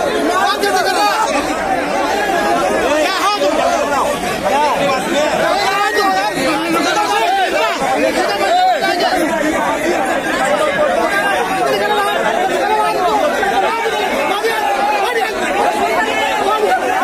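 A crowd of men shout and argue over one another.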